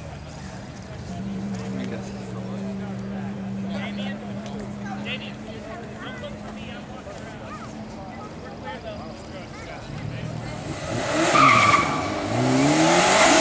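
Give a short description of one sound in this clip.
A car engine idles, then revs up loudly and accelerates away.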